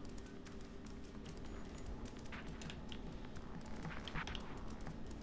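A cat's paws patter softly on pavement.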